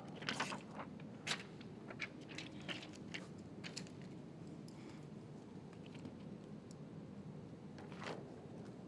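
Hands slide and tap against a car window and door.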